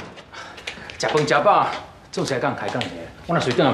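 A man answers calmly nearby.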